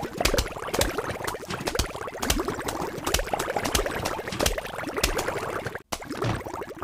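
Small cartoon shots pop rapidly in a video game.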